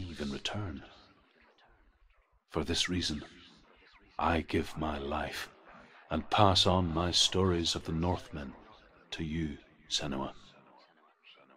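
A man speaks slowly and solemnly, as if telling a tale.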